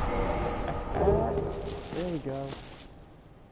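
Short ringing chimes sound.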